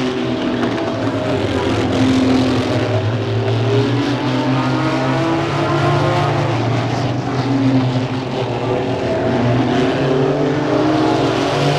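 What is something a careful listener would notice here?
Several racing car engines roar loudly, rising and falling in pitch as the cars speed past.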